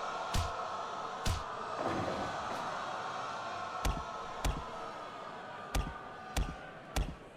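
Blows land with heavy thuds.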